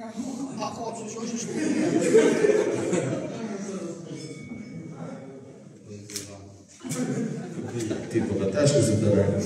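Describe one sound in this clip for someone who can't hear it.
A man speaks into a microphone over a loudspeaker, with animation.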